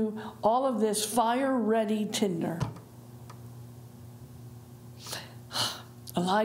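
A middle-aged woman speaks with animation into a microphone.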